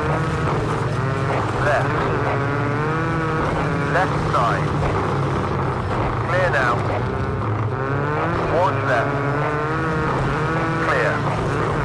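A racing car engine roars loudly and revs up and down through gear changes.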